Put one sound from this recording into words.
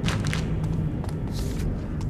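A sheet of paper rustles as it is picked up.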